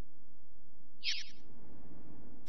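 A bright chime rings out briefly.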